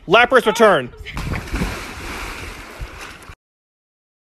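Water splashes heavily into a pool.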